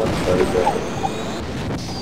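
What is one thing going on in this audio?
A weapon fires a crackling energy beam.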